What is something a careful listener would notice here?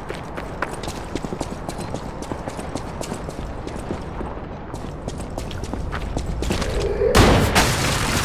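Footsteps run across wet cobblestones.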